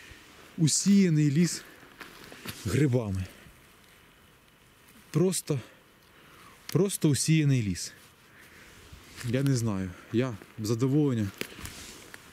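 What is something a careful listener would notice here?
Footsteps rustle through dry leaves and pine needles.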